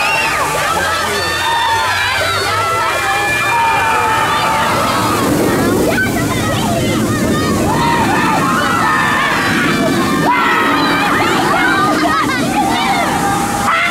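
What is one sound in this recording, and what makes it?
Riders scream loudly on a roller coaster.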